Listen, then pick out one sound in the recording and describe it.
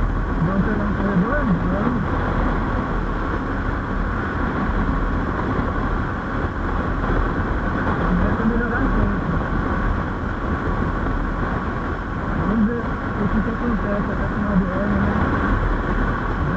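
Wind rushes loudly past the rider.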